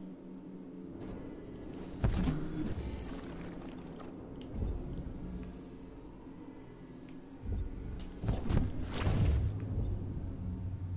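Heavy thumps sound as a figure climbs and lands.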